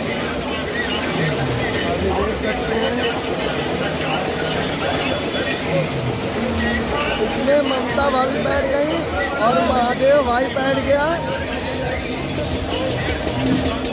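A metal ride car creaks and clanks as people climb in.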